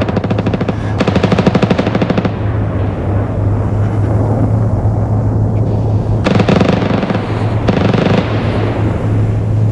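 Flares burst and hiss in loud bursts.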